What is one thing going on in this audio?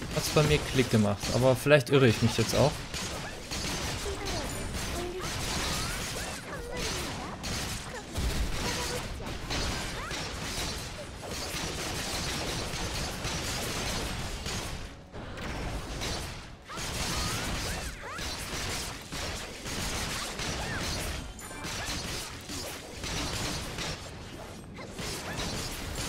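Sword slashes and magic blasts whoosh and crash in rapid succession.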